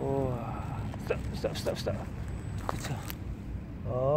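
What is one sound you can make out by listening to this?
Dry leaves crackle under small rubber tyres.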